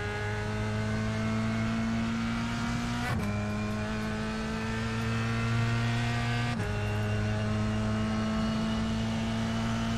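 A racing car engine drones loudly, its pitch climbing steadily and dropping sharply with each gear change.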